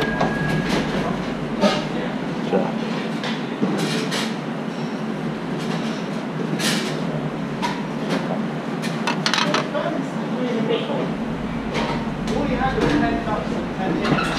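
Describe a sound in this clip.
Metal tweezers click softly against a porcelain plate.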